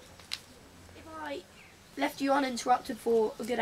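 A young boy speaks nearby.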